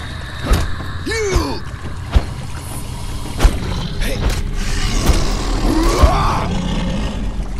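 A large beast growls and snarls.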